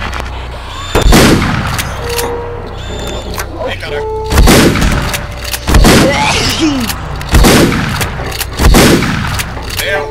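A shotgun fires loud, booming blasts that echo.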